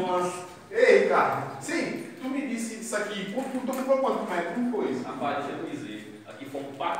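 A man talks with animation close by, in an echoing bare room.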